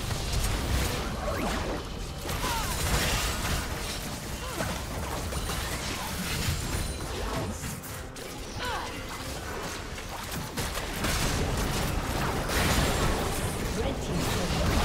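Magic blasts crackle and whoosh in a hectic battle.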